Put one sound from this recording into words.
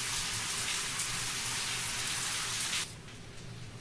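Shower water sprays and splashes steadily, then cuts off suddenly.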